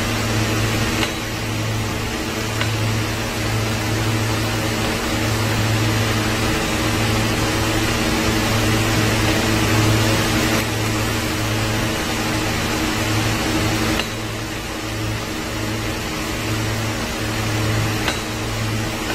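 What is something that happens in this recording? Plastic pipes click and knock as they are fitted together.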